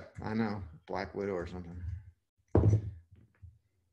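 A screwdriver clunks down onto a table.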